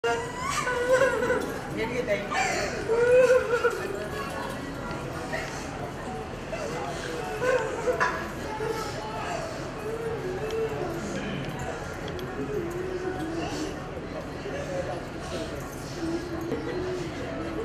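A crowd of women chatter and call out nearby.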